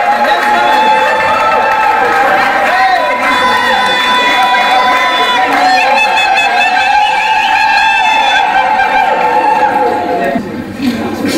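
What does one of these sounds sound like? A crowd cheers loudly in a large echoing room.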